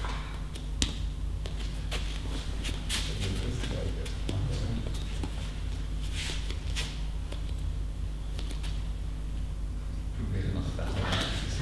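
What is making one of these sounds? Bare feet shuffle softly on a mat in a large echoing hall.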